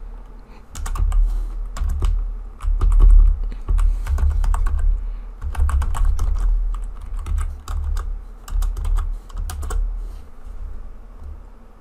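Keyboard keys clack in quick bursts.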